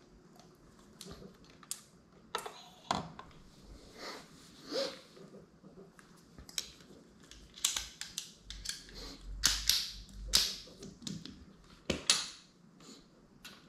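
Metal gear clicks and clatters close by.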